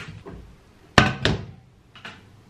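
A metal pan clanks down onto a stove.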